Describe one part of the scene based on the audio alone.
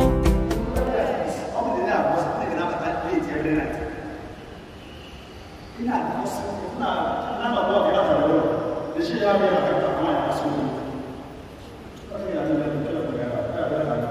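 A man speaks with animation through a microphone and loudspeakers in a large echoing hall.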